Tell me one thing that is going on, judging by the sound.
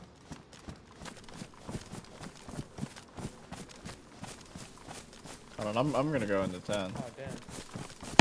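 Footsteps swish through tall grass.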